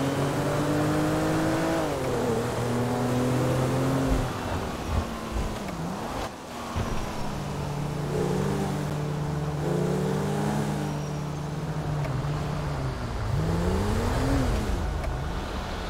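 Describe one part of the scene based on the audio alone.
A car engine hums steadily and rises and falls in pitch as the car speeds up and slows down.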